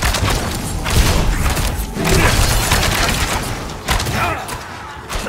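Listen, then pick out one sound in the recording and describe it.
Heavy blows and magic blasts thud and crackle in a fight.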